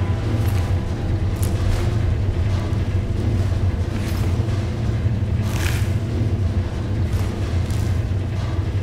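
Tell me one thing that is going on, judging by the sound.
Soft menu clicks sound as items are picked up.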